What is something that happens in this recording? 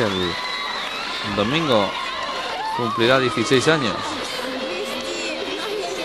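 Young women squeal and cheer as they hug.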